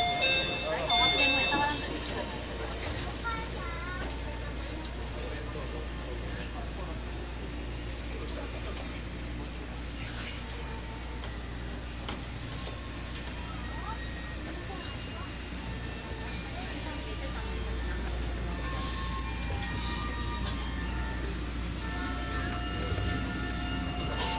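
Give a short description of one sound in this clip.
A monorail train hums and rumbles steadily along its track.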